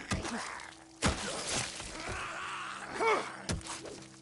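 A melee weapon strikes with heavy thuds.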